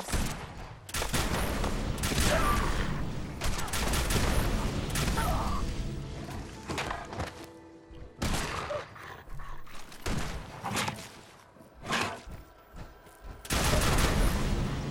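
A heavy gun fires in loud, rapid bursts.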